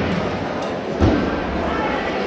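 A gymnast lands with a thud on a mat.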